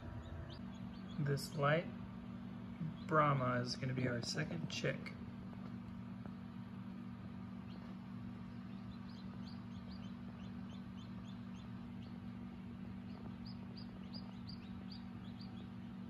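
A chick peeps in quick, high chirps.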